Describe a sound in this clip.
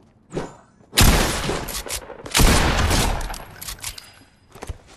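Gunshots bang loudly in quick bursts.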